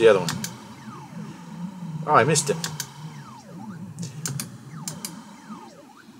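A steady low electronic game tune hums underneath.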